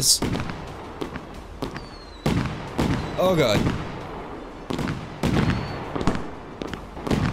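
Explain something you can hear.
Fireworks burst and crackle repeatedly.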